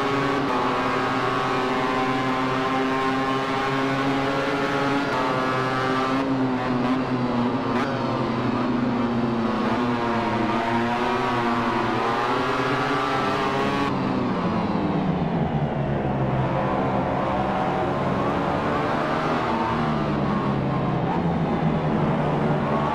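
A motorcycle engine whines at high revs, rising and falling as it shifts gears.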